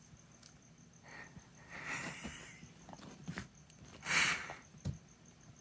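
A dog sniffs and snuffles close by.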